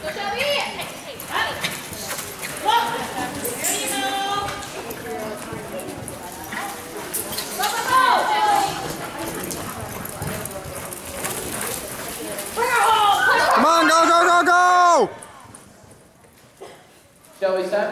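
A horse gallops over soft dirt in a large echoing hall.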